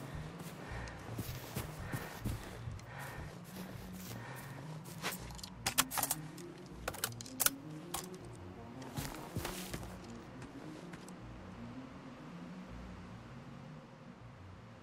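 Footsteps crunch steadily through grass and undergrowth.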